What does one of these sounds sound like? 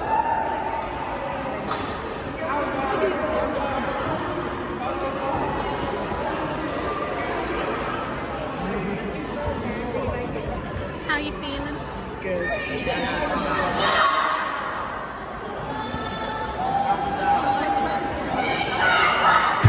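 Young women chatter and call out in a large echoing hall.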